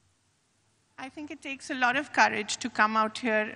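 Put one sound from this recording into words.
A woman sings through a loudspeaker.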